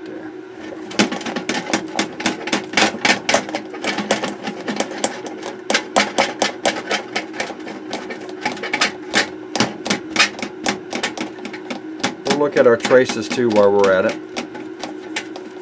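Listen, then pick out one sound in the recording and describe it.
A cloth rubs and scrubs briskly against a circuit board.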